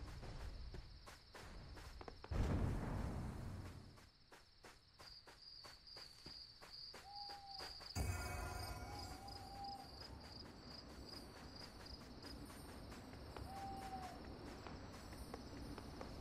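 Footsteps tread steadily along a dirt path.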